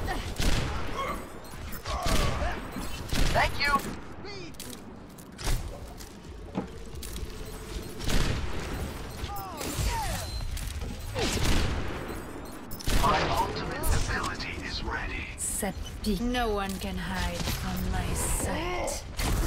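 A futuristic gun fires in short, sharp bursts.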